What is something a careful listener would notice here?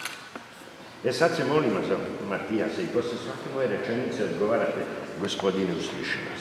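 An elderly man reads out aloud in a calm voice, in a large echoing hall.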